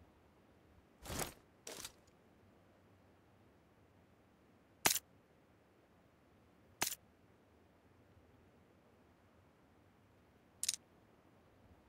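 Short game menu clicks and swishes sound now and then.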